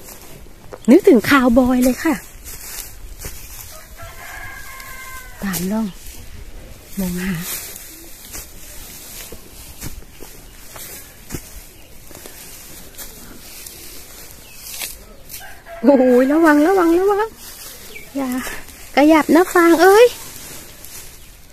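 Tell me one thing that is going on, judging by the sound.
Dry straw rustles and crackles close by.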